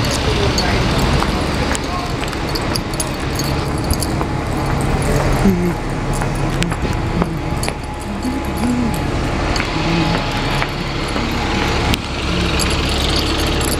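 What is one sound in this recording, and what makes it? A bus engine idles and rumbles nearby.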